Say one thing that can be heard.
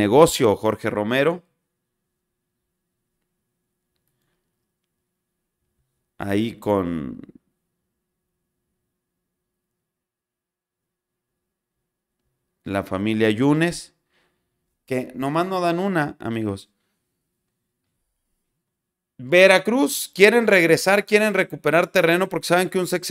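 A man talks calmly and close into a microphone, in bursts with pauses.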